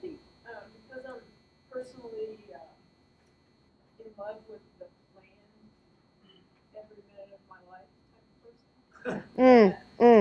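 A woman speaks in short, animated phrases.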